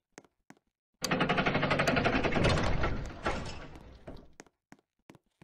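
A heavy sliding door rumbles open and grinds to a stop.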